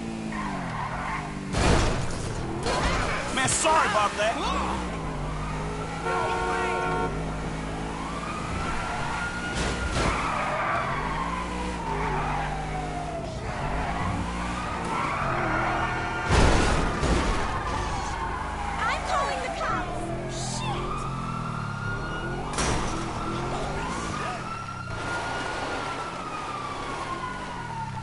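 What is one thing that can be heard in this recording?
A sports car engine revs up and down as the car speeds along.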